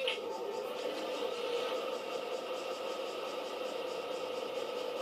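A small model locomotive hums steadily as it runs along the track.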